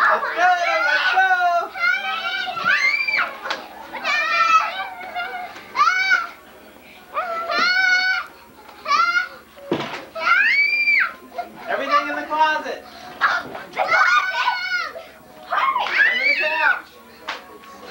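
Pillows thump against furniture.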